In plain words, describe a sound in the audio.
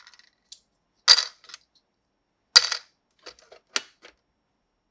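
A toy drawer snaps shut.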